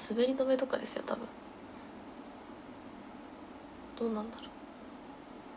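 A young woman speaks softly and close to a microphone, in short bursts.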